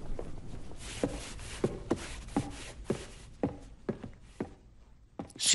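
Footsteps thud down wooden stairs.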